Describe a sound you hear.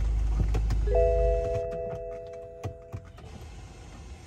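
A car's warning chime sounds briefly.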